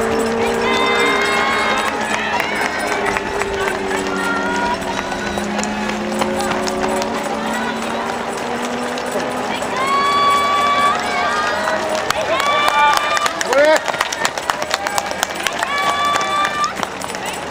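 A crowd of spectators cheers and shouts nearby outdoors.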